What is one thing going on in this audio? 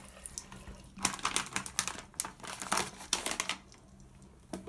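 A plastic wrapper crinkles close by.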